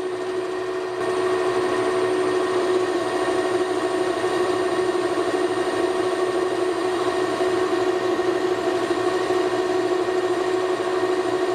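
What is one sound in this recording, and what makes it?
A lathe tool cuts metal with a scraping hiss.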